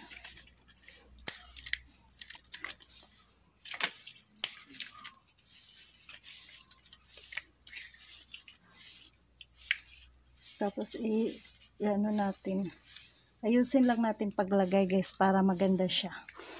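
Stiff leaves rustle and soil crumbles as plants are handled.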